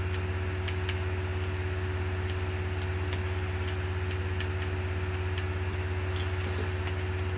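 Soft menu clicks tick as selections change in a game.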